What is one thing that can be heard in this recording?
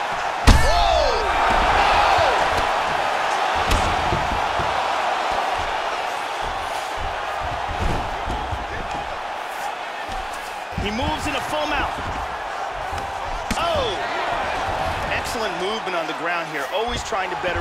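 A crowd roars in a large arena.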